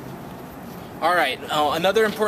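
A man speaks loudly and excitedly close by.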